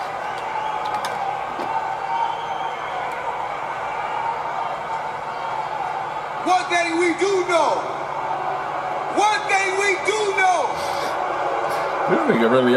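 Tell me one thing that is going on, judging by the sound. A man speaks through a microphone, heard over a loudspeaker.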